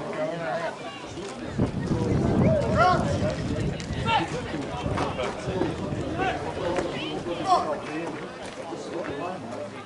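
A crowd of spectators chatters in the distance.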